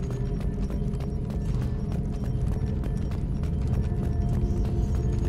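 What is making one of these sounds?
Heavy footsteps thud steadily on rocky ground.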